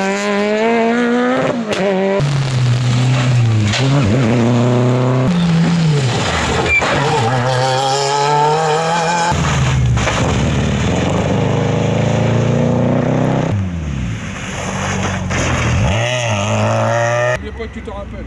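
Rally car engines roar loudly and rev up and down as cars speed past one after another.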